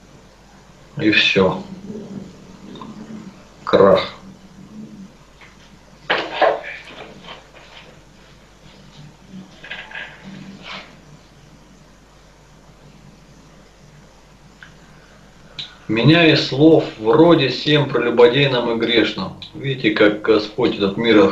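A man speaks through an online call, in short bursts and then at length.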